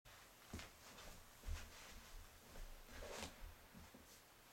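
Footsteps shuffle on a wooden floor.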